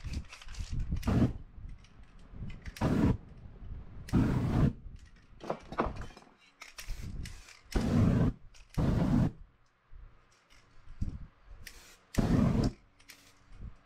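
A torch flame roars in short bursts.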